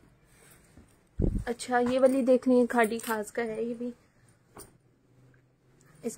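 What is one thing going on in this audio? Cloth rustles softly as fabric is laid down.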